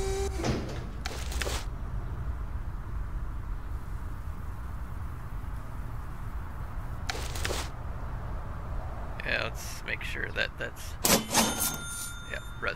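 A plastic garbage bag thumps softly into a metal wheelbarrow.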